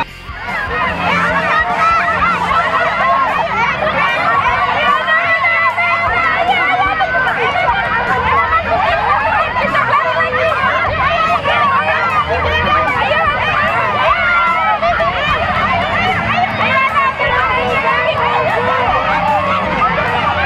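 A crowd of adults and young children cheers and shouts excitedly outdoors.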